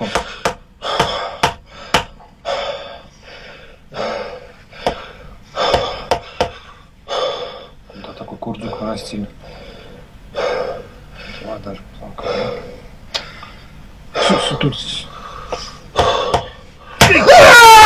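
A mallet taps sharply on a person's back.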